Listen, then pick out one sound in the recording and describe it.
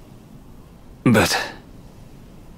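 A young woman speaks a single hesitant word.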